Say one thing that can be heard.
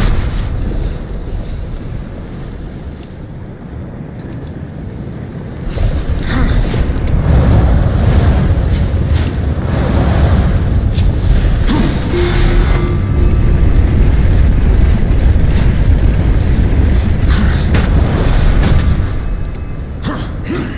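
Lava rumbles and bubbles steadily.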